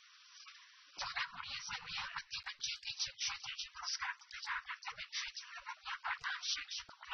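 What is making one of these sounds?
A woman reads out news clearly and steadily.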